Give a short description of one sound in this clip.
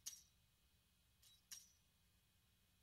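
A metal percussion instrument is struck a few times and rings briefly.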